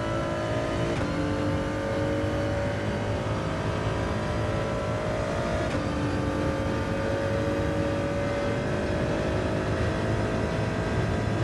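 A racing car engine roars at high revs, dropping in pitch at each gear shift.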